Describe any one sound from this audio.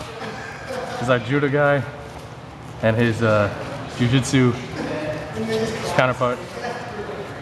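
A man speaks loudly with animation nearby, in an echoing room.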